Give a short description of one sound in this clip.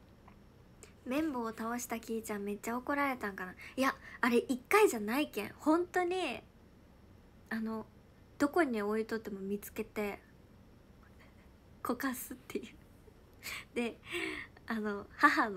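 A young woman talks animatedly and close to a microphone.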